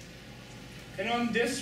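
A man speaks up briefly nearby.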